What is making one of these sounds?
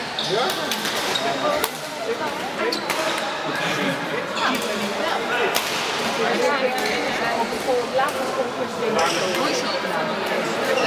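Several men and women talk and call out across a large echoing hall.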